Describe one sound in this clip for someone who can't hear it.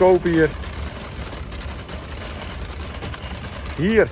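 A shopping cart rolls and rattles over paving stones.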